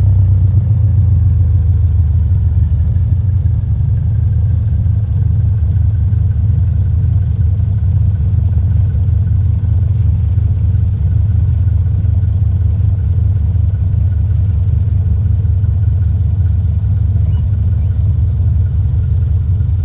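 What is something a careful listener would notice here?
A small propeller plane's engine drones steadily, low and loud.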